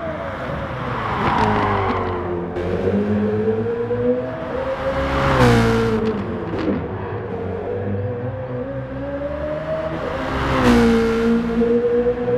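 A racing car whooshes past up close.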